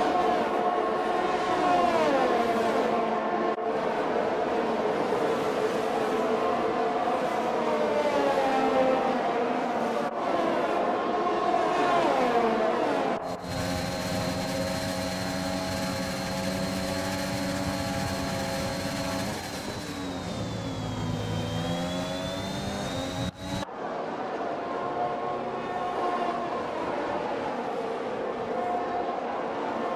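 Racing car engines whine at high revs, rising and falling as they pass.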